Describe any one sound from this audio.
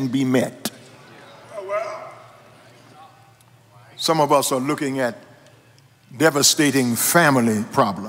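A middle-aged man preaches with animation into a microphone.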